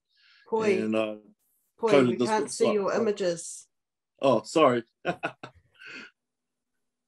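A middle-aged woman talks with animation over an online call.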